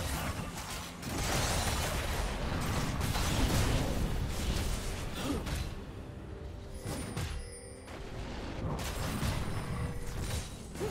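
Video game spells and attacks crackle and boom in a busy fight.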